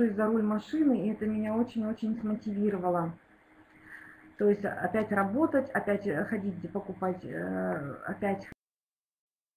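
A middle-aged woman speaks steadily through an online call.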